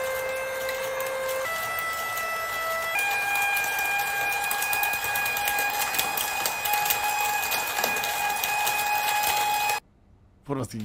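An electric toy plays a tinny electronic melody of long, steady notes.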